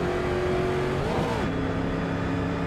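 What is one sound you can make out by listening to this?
A racing car engine shifts gear and rises in pitch.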